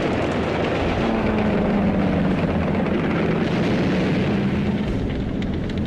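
A propeller plane's engine roars low overhead.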